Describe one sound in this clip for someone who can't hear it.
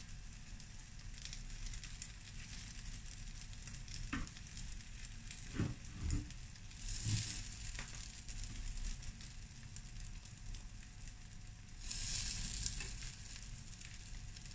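Batter sizzles on a hot pan.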